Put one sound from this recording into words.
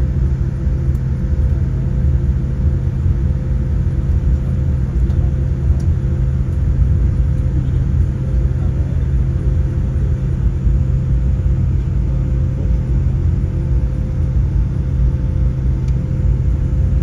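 A jet engine drones steadily, heard from inside an aircraft cabin.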